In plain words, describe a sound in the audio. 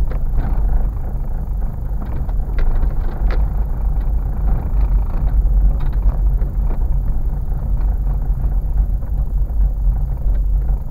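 Tyres crunch and bump over a rough gravel road.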